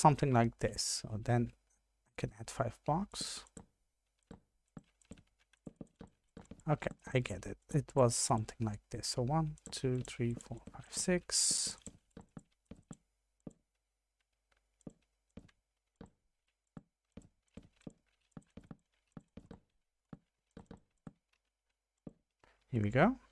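Wooden blocks are placed one after another with soft, quick knocks.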